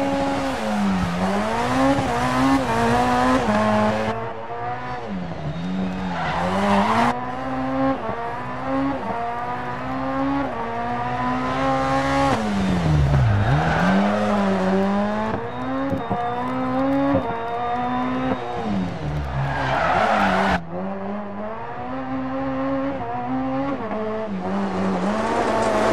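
Tyres skid and hiss on loose gravel.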